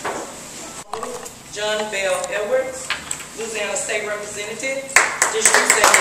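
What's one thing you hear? A woman speaks to an audience.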